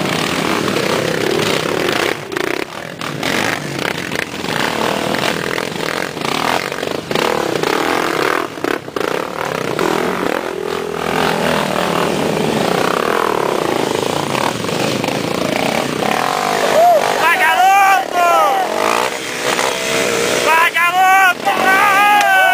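Motorcycle tyres spin and scrabble in loose dirt.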